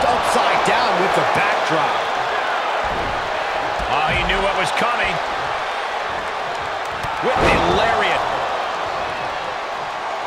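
A large crowd cheers and roars loudly throughout.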